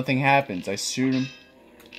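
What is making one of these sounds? A sword strikes with a sharp game sound effect.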